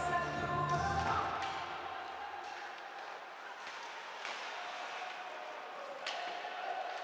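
Skates scrape across the ice in a large echoing arena.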